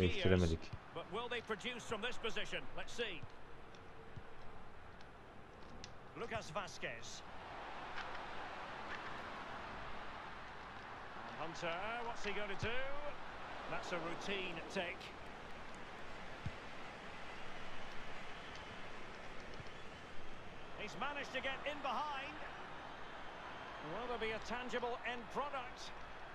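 A crowd murmurs and cheers steadily.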